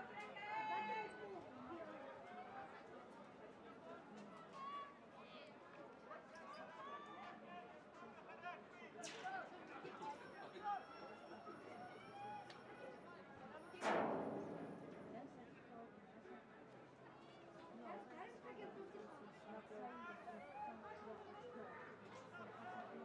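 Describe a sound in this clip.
Spectators chatter in the distance.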